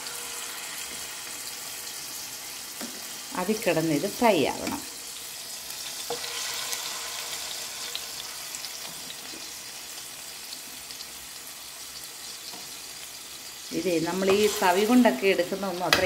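Meat sizzles and spits in hot oil in a pan.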